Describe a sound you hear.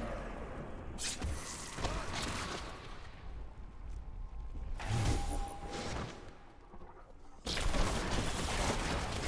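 Spells burst with loud blasts.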